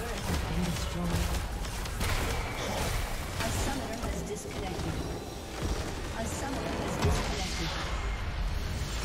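Spells and blasts crackle and boom in a fast video game battle.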